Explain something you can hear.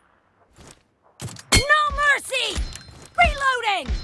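A rifle fires a loud single shot.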